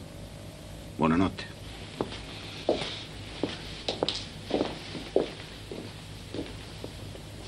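Footsteps walk away across a floor.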